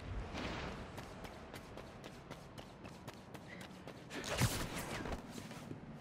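Quick footsteps patter against a wall.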